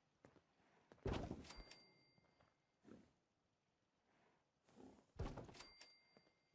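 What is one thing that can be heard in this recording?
A wooden box thuds down heavily into place.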